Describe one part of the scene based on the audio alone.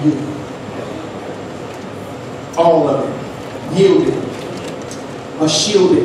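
A man speaks slowly and deliberately into a microphone, heard through loudspeakers in an echoing hall.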